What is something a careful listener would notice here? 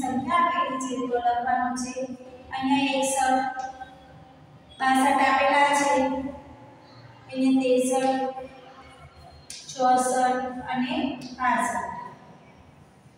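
A young woman speaks clearly and calmly, as if teaching, close by.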